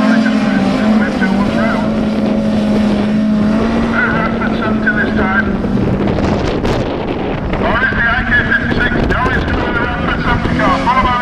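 Car engines roar and rev as cars race past.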